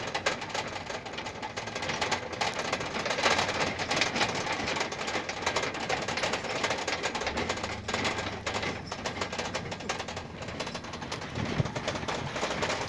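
Wind rushes past riders in an open truck bed.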